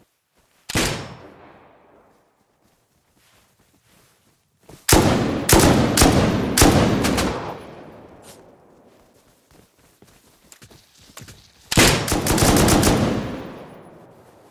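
Rifle shots crack loudly and echo outdoors.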